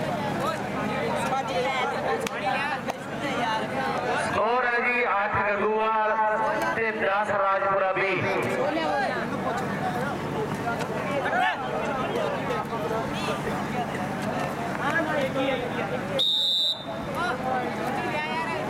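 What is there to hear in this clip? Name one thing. Young men shout to each other nearby.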